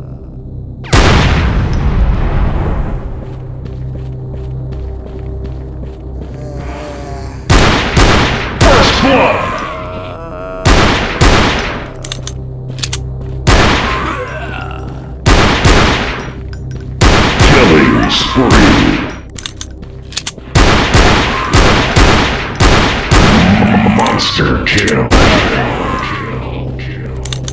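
Pistol shots ring out in loud bursts.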